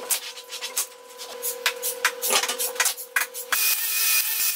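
An electric drill whirs in short bursts.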